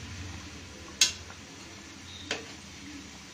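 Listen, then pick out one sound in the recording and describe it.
A metal skimmer clinks against the side of a pan.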